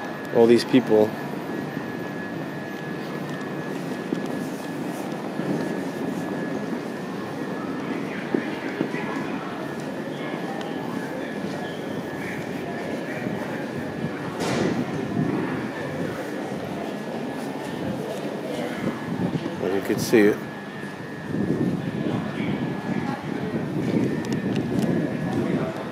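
A stationary train hums steadily.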